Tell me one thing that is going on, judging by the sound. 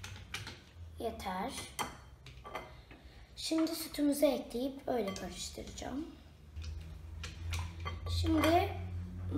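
A young girl talks calmly and close by.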